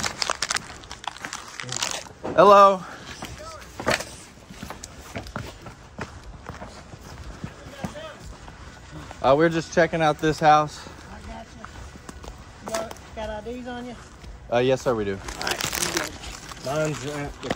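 Footsteps crunch through dry brush and leaves.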